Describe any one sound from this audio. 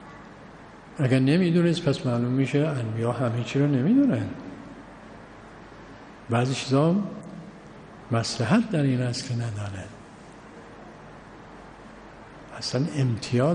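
An elderly man speaks calmly and deliberately into a microphone, with pauses.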